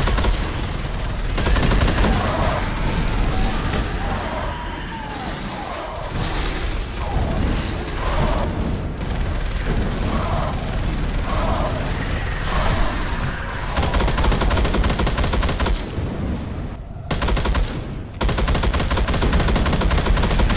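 A flamethrower roars in loud rushing bursts.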